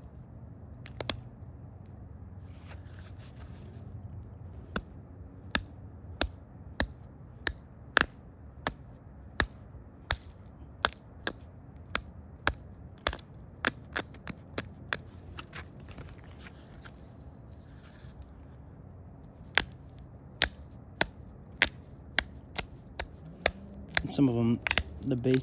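Stone flakes snap off with sharp, crisp clicks, one after another.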